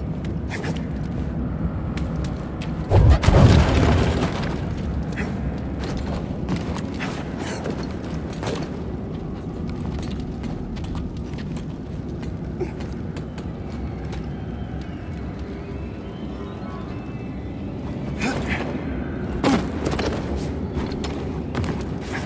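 Footsteps shuffle and scuff on stone.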